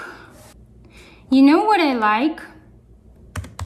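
A young woman speaks close to a microphone in a sing-song, expressive voice.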